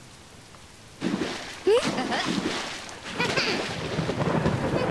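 Water splashes and bubbles in a bathtub.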